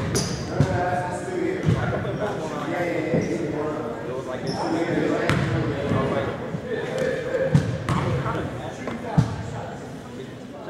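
A crowd of spectators chatters and murmurs in a large echoing gym.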